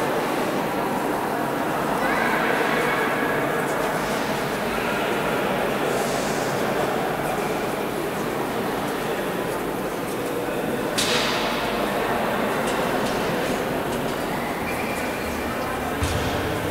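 Many voices murmur softly in a large echoing hall.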